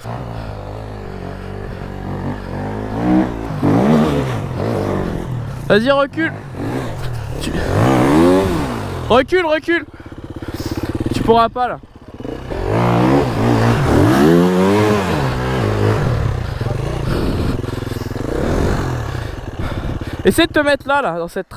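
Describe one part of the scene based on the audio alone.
An enduro dirt bike engine revs hard as the bike struggles up a steep slope.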